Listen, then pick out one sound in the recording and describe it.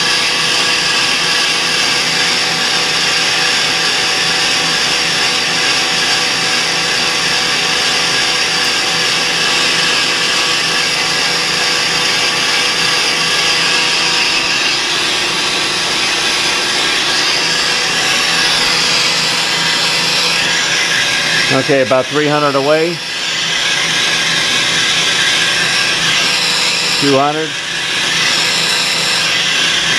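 A metal lathe hums steadily as its cutter shaves metal.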